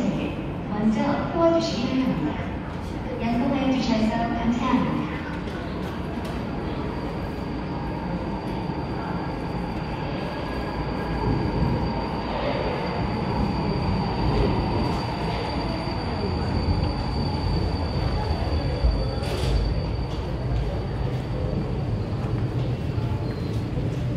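A light metro train rolls into a station.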